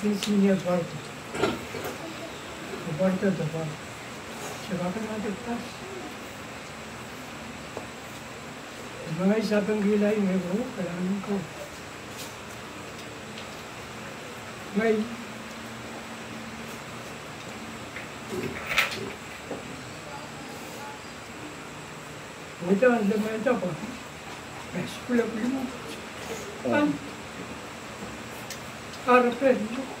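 An elderly man speaks calmly nearby, with pauses.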